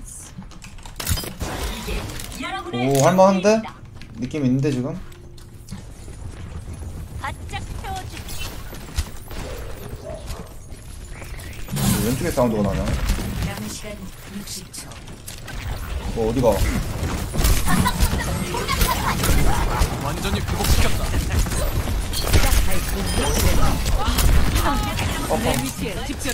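Gunfire and game effects crackle and thud throughout.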